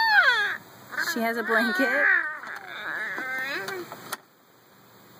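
A young girl talks in a high voice close by.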